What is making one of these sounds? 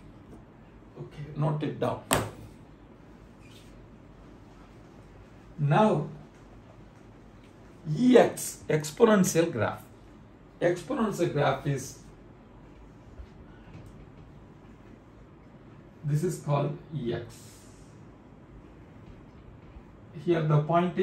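A middle-aged man speaks calmly in short phrases nearby.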